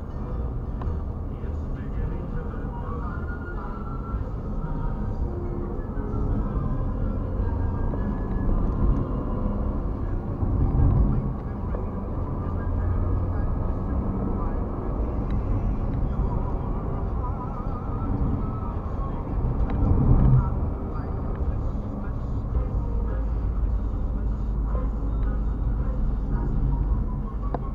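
A car engine hums steadily inside the car as it drives.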